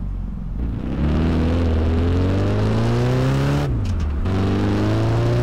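A car engine revs up as the car speeds up, rising in pitch.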